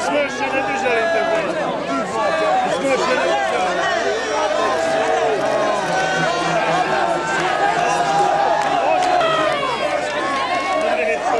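A large crowd of men cheers loudly outdoors.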